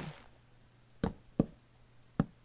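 A wooden ladder clicks into place a few times.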